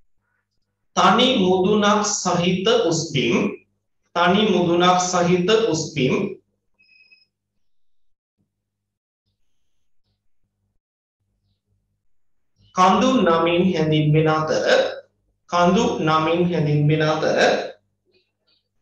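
A man speaks calmly and clearly into a close microphone, pausing between phrases.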